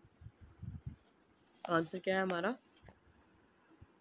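Paper pages rustle as a book page turns.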